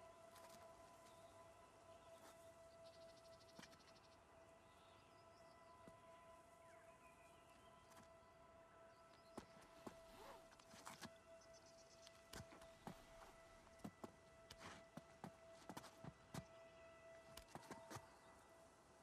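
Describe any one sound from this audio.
Hands and shoes scrape and knock against rock as a climber pulls upward.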